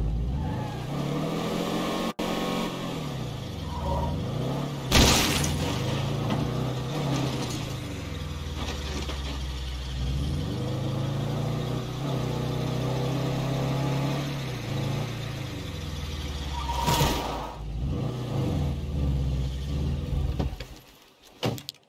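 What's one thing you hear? A car engine roars and revs as the car speeds along a road.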